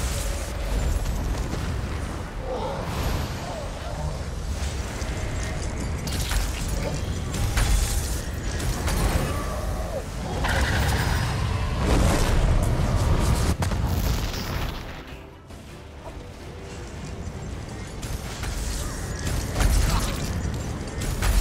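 Magic spells crackle and boom in a fierce fight.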